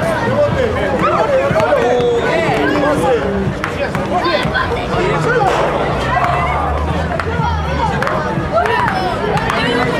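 Children shout and chatter excitedly outdoors.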